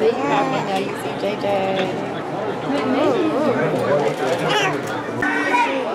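A crowd of adults and children chatter nearby in an echoing hall.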